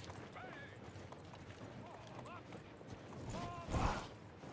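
A large group of soldiers marches together.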